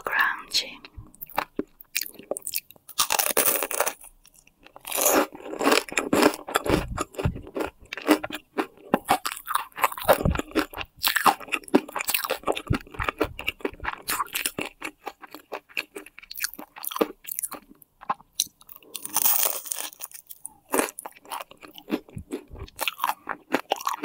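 Crispy food crunches loudly as a young woman bites and chews close to a microphone.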